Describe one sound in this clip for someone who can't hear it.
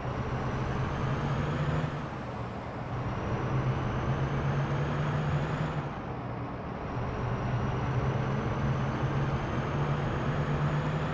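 A truck engine rumbles steadily, slowly rising in pitch and dropping back at each gear change.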